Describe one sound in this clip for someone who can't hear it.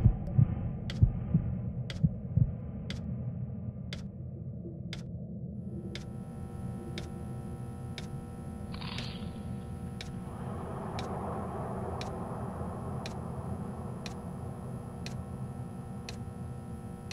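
A game countdown timer ticks once every second.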